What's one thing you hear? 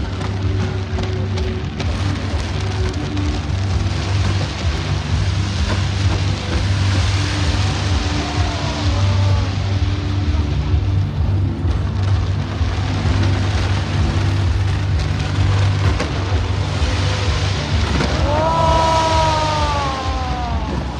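Fireworks boom and rumble loudly nearby.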